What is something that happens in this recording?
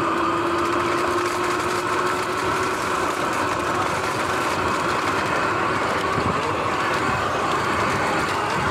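An electric motor whines steadily.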